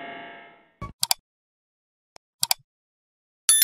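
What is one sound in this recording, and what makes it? A mouse button clicks several times.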